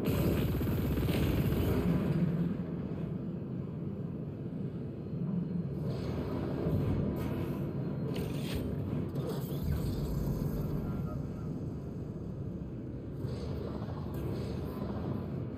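A hovering craft's thrusters hum with a steady low rumble.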